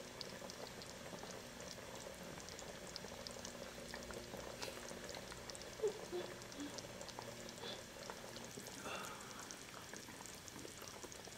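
Broth bubbles steadily in a pot.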